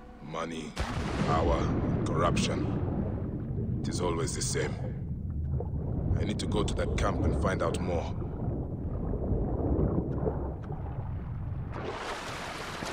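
Water bubbles and gurgles underwater.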